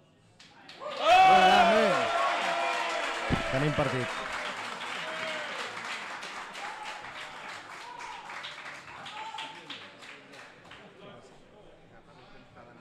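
A crowd applauds, then the applause slowly fades.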